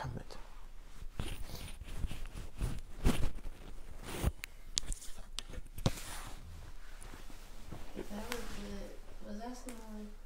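Clothing rustles and thumps as a man stands up and moves about.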